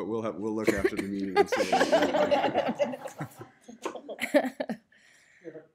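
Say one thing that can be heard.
A group of men and women laugh together in a large room.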